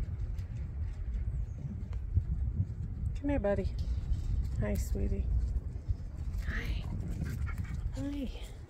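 A dog's paws pad softly on dirt.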